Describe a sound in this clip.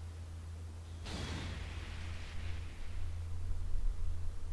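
A rushing whoosh sweeps in and fades.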